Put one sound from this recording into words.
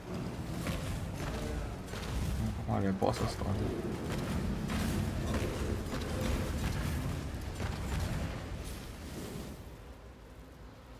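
Fiery spell blasts and explosions rumble and crackle.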